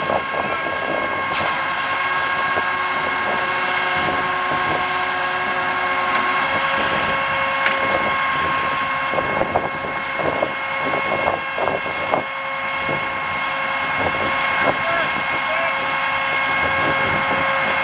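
A vehicle engine hums steadily close by.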